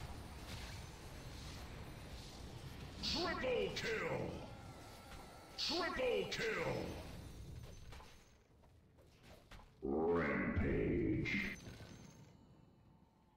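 Magic spells whoosh and burst.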